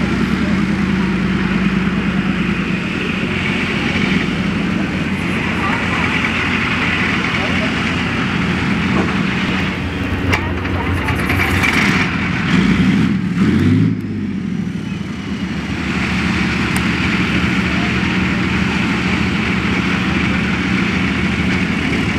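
A tank's diesel engine rumbles and idles steadily.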